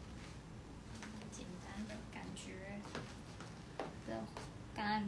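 A young woman speaks calmly, close by.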